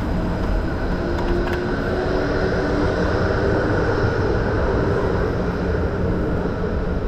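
A tram hums and whines as it passes close by.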